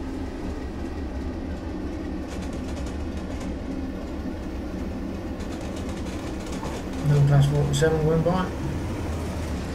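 A diesel locomotive engine rumbles steadily.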